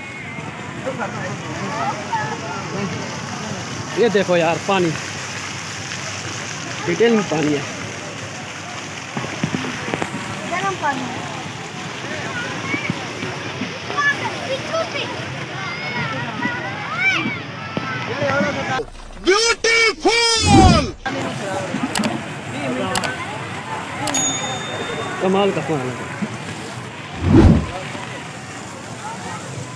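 A crowd of men, women and children chatter outdoors.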